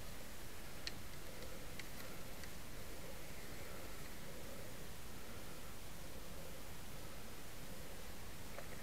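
A slow stream flows quietly.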